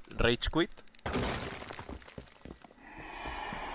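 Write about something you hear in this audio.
A wall crashes apart, with debris tumbling down.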